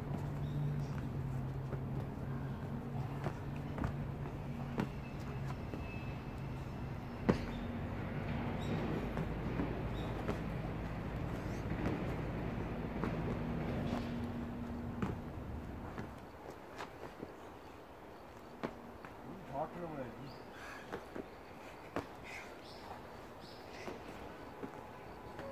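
Feet thud as people jump and land on rubber flooring.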